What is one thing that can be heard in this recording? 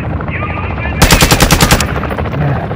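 A rifle fires a rapid burst of loud shots.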